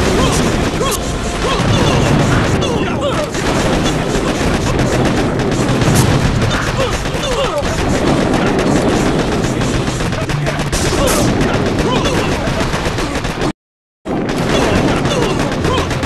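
Explosions boom now and then.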